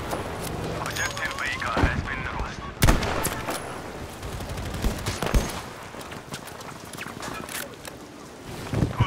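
Gunshots crack in the distance, one after another.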